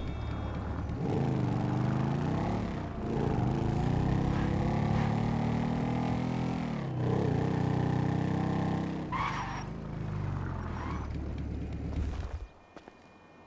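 A motorcycle engine revs up and down as the bike rides off.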